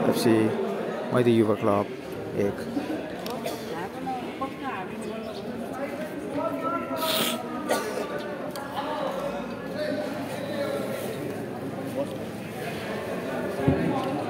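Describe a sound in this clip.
A crowd of young men and women chatter and shout in an echoing hall.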